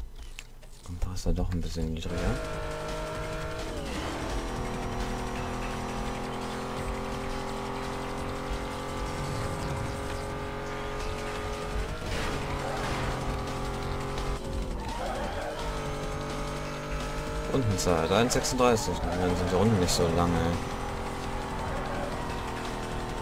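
A racing car engine roars at high speed, its pitch rising and dropping with gear changes.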